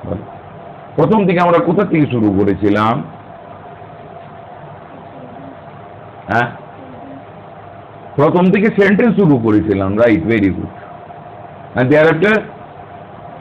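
An elderly man speaks slowly and calmly in short phrases, close by.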